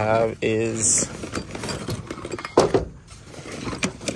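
Tools clatter and rustle inside a fabric bag.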